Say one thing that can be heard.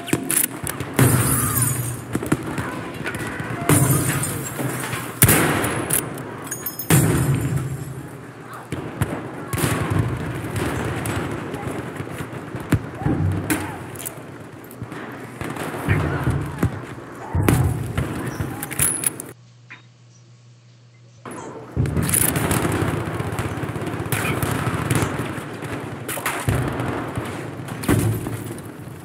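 Sniper rifle shots crack loudly, echoing.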